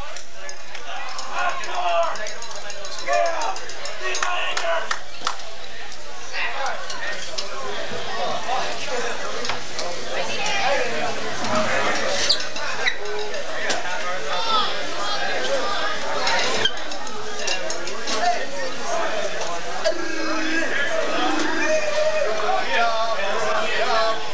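A crowd of people chatters in a room.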